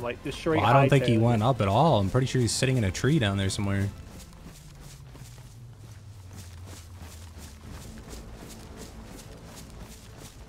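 Footsteps crunch steadily through grass and brush.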